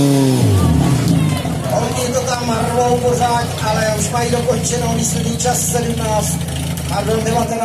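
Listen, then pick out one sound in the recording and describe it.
A crowd of men and women talk and call out outdoors.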